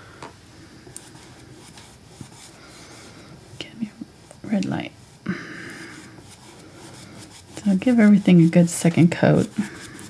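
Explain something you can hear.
A paintbrush strokes softly across canvas.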